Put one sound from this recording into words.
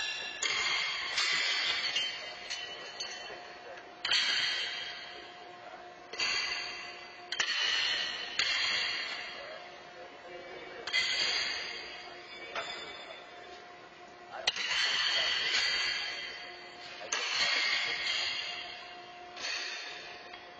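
Horseshoes clang against steel stakes and ring out in a large echoing hall.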